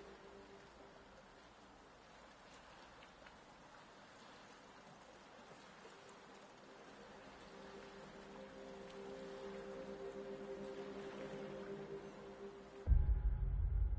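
Water laps and splashes softly against a small wooden boat.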